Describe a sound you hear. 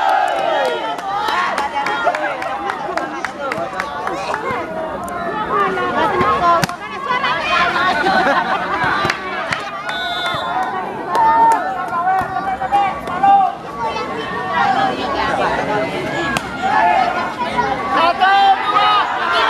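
A crowd of spectators cheers and chatters loudly outdoors.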